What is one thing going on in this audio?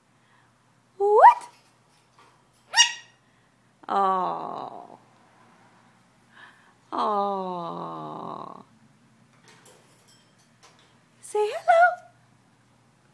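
A parrot whistles and squawks close by.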